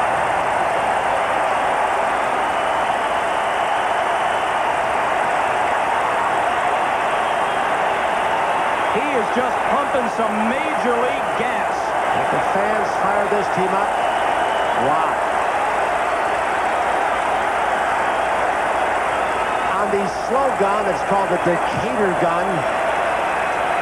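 A large stadium crowd murmurs and cheers, echoing under a dome.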